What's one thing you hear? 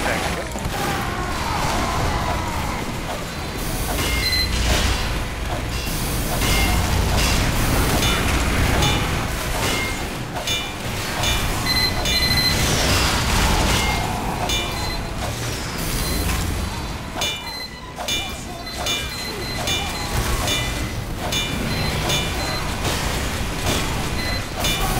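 A metal wrench clangs repeatedly against a machine.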